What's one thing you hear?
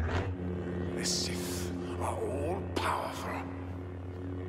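A lightsaber swooshes through the air in quick swings.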